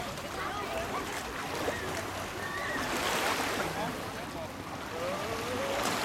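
Water splashes as people wade.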